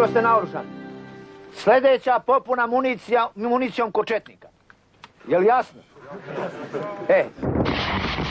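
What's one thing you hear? A man shouts forcefully to a crowd outdoors.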